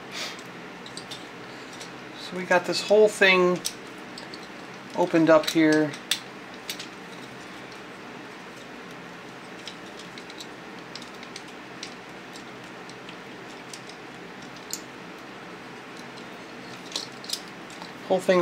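Plastic toy parts click and snap softly as hands move them.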